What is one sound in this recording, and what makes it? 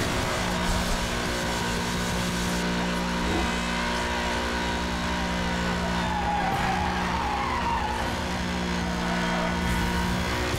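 Tyres screech as a car drifts.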